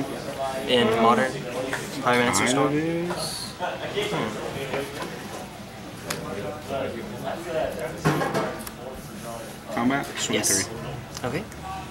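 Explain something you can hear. Cards tap and slide onto a soft play mat.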